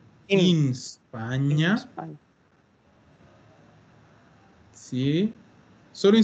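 A woman speaks slowly and clearly over an online call, pausing between words.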